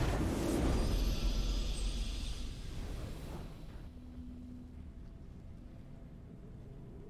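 A triumphant fanfare swells, then fades.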